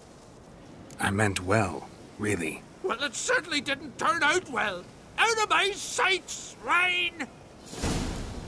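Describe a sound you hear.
A middle-aged man speaks angrily and loudly.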